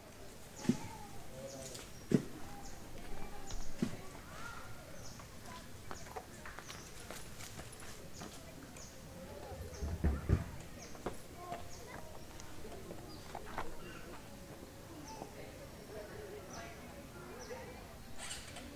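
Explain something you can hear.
A newborn macaque suckles at its mother's nipple.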